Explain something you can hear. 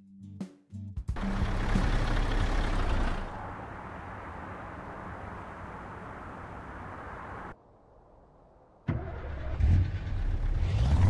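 A truck engine idles with a low rumble.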